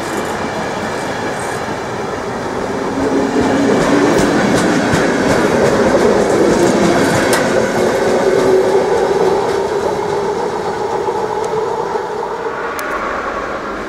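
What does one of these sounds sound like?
A passenger train rumbles and squeals as it pulls away along the track.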